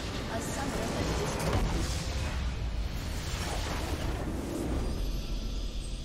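A loud explosion booms and crackles.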